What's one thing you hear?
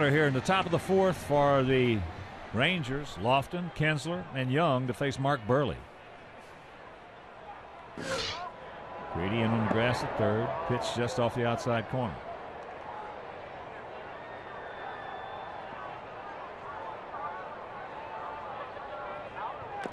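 A crowd murmurs in a large open-air stadium.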